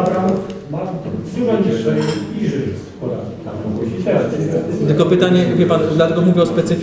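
A man speaks calmly in a room, heard from across a table.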